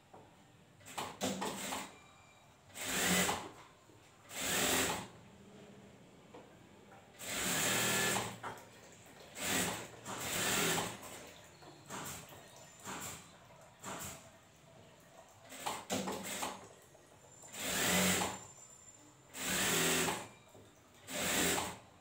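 A sewing machine whirs in short bursts.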